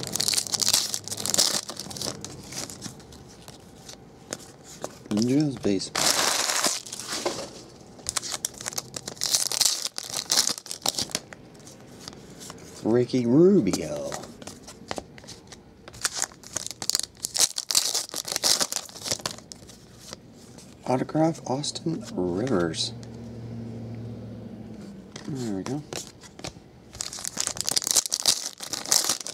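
Foil wrappers crinkle and tear as they are ripped open.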